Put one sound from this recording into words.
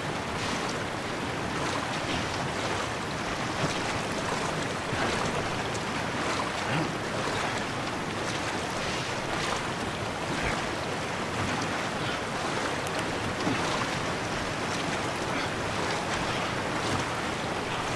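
Water splashes as a swimmer pushes a wooden raft along.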